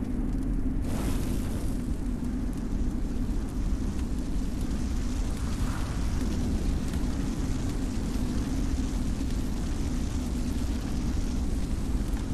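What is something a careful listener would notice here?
Flames surge and roar around an armoured figure.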